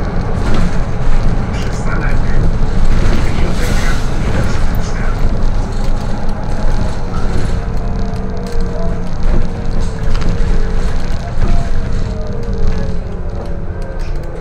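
A bus engine rumbles steadily from inside the bus as it drives along.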